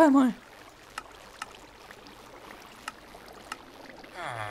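Soft clicks tick now and then as a game menu is used.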